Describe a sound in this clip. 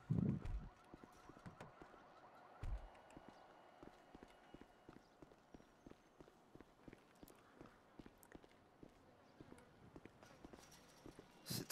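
Footsteps walk briskly on pavement.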